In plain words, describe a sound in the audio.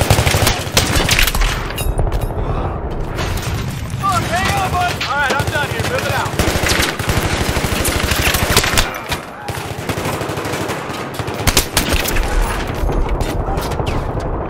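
Gunfire cracks in rapid bursts, with loud shots ringing out.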